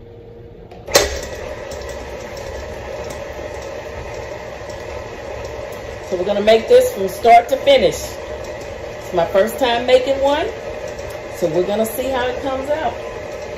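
An electric mixer motor hums steadily.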